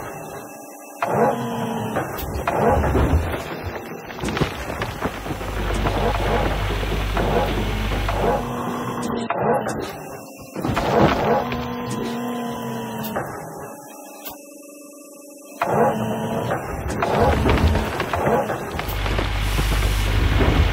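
A bucket scrapes and digs into soil.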